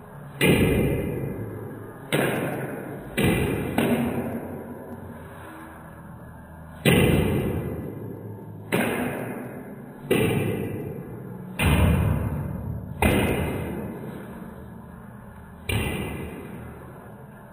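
A ping pong ball clicks back and forth off paddles and a table in an echoing room.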